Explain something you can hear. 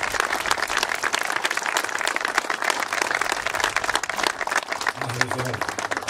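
A crowd claps and applauds outdoors.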